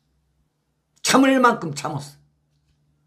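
A middle-aged man speaks briefly and with animation into a close microphone.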